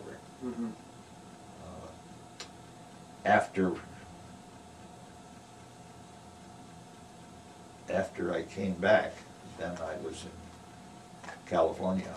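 An elderly man speaks calmly and haltingly, close by, with pauses.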